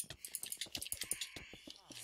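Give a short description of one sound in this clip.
Short video game sword hits thud during a fight.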